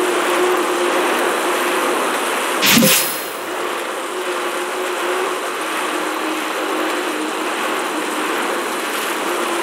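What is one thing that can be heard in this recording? A man breathes heavily close by.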